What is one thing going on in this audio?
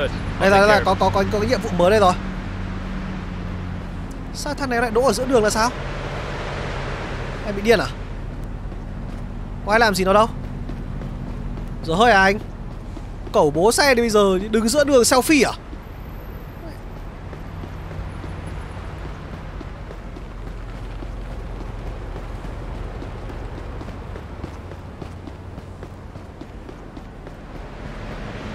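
Traffic hums steadily in a city street.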